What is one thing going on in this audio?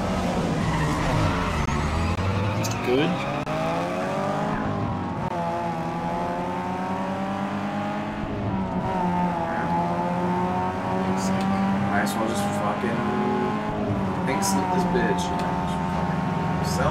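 A racing car engine revs hard, rising in pitch and dropping with each gear shift.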